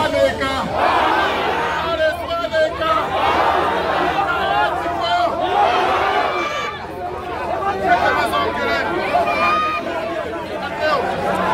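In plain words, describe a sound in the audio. A man speaks loudly through a microphone outdoors.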